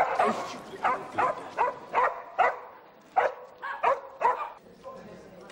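A dog barks loudly in short, repeated bursts.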